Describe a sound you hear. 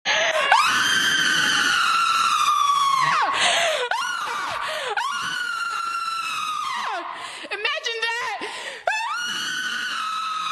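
A young person screams long, loud sustained cries into a microphone.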